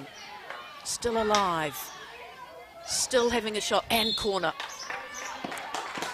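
A hockey stick cracks against a ball.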